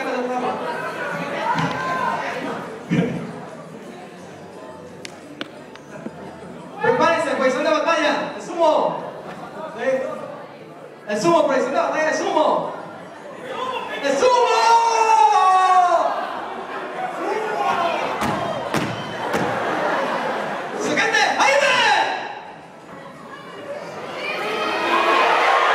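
An audience cheers and shouts in a large echoing hall.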